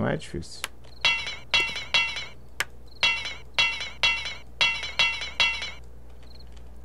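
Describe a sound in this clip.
An axe strikes wood with repeated hollow knocks.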